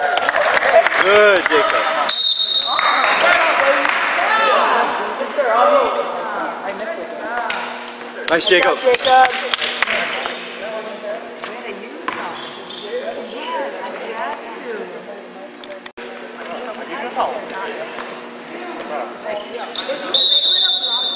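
Sneakers squeak sharply on a hard floor in a large echoing gym.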